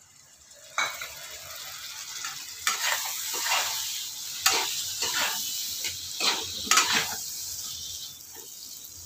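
Food sizzles in hot oil.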